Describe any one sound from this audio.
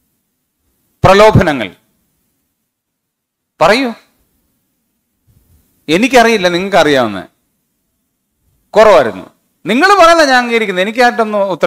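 A man lectures calmly through a microphone, in short phrases with pauses.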